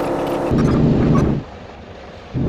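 A bus door hisses shut with a burst of air.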